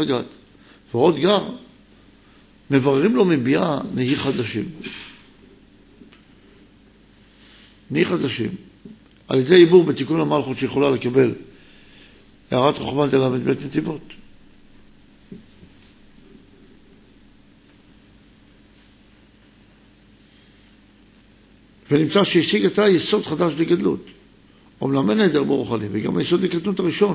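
A middle-aged man reads aloud calmly into a microphone, in short bursts with pauses.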